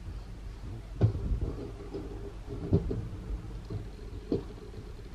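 A metal pan scrapes and knocks on a stovetop.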